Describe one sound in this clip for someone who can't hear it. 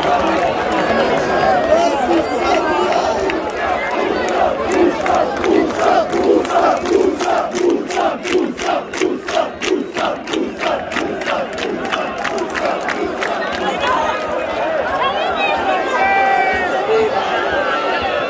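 A large stadium crowd chants loudly in unison.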